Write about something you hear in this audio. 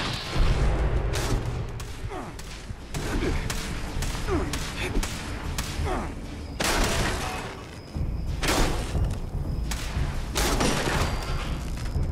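Heavy melee blows strike metal with sharp thuds.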